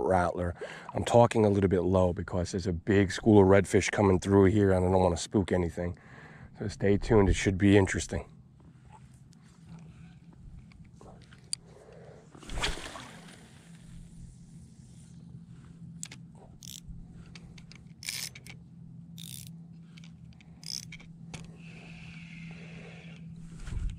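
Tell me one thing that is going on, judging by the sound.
Small waves lap softly against the shore.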